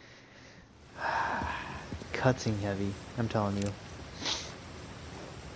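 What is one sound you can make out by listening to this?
A man speaks calmly and closely in a low voice.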